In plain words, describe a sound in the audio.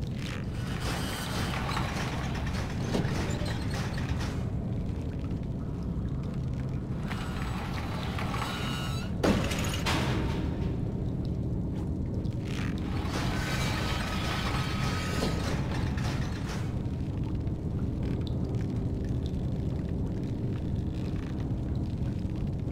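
A metal lamp creaks as it swings on a rope.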